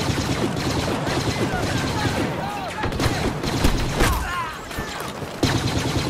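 Laser blasters fire in sharp bursts.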